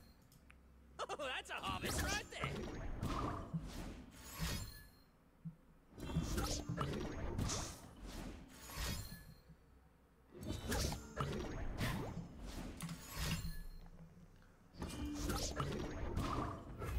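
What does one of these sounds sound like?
Magical whooshing and chiming effects burst out in quick runs.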